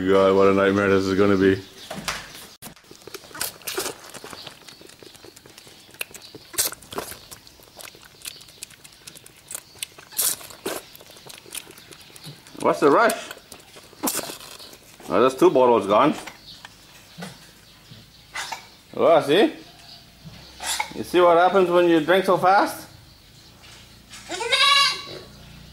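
A young goat bleats loudly, again and again.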